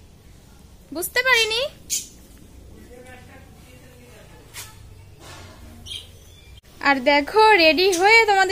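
A young woman speaks calmly close by.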